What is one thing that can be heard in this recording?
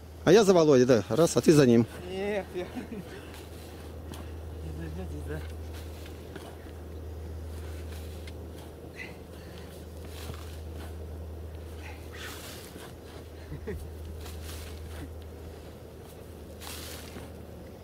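Shovels scrape and chop into soil.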